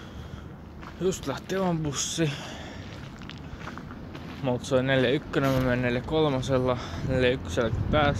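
A young man talks close to a phone microphone.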